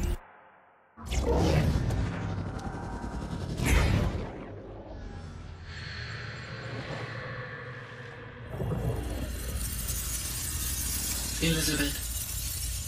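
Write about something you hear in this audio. Electronic tones hum and shimmer.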